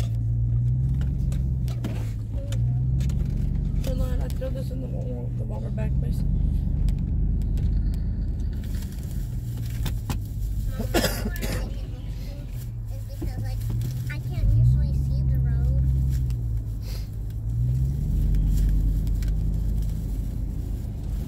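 A car engine hums low and steady as the car drives slowly, rising and falling with speed.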